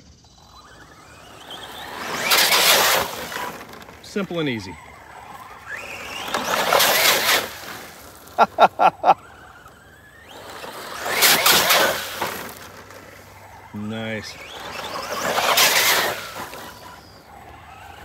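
A toy remote-control car's motor whines loudly as it speeds past, rising and fading.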